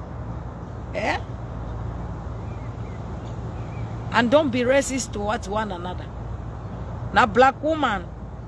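A young woman speaks close by in short bursts.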